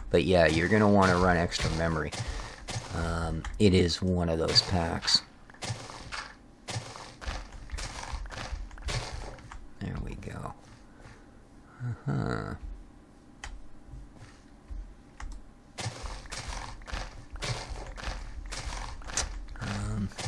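A shovel digs into soft dirt with quick, repeated crunching thuds.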